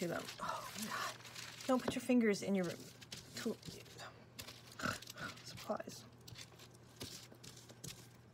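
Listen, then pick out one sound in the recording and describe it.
Thin foil crinkles and rustles as hands press and rub it.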